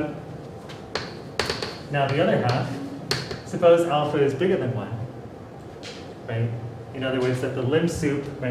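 Chalk taps and clicks on a board.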